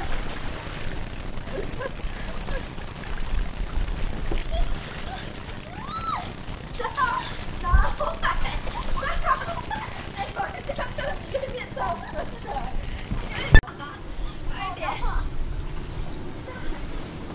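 Water splashes and laps.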